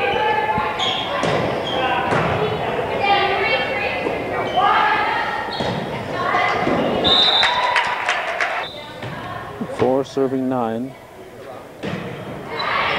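Young women shout and call out to each other in a large echoing gym.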